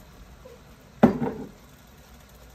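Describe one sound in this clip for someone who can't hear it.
A glass jar is set down with a knock on a hard counter.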